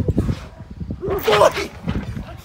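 A young man shouts close by.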